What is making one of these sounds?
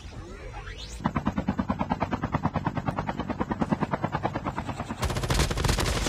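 A helicopter's rotor thumps loudly overhead.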